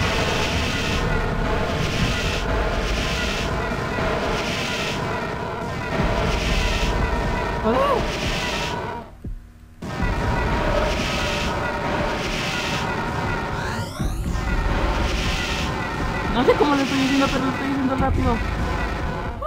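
Upbeat dance music plays with a steady, pulsing beat.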